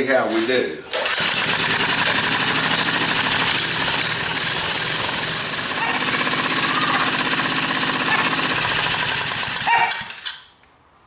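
A small gasoline engine runs loudly and steadily, then cuts off.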